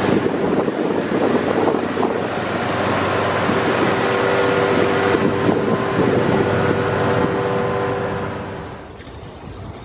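A ship's hull grinds and crushes through ice up close.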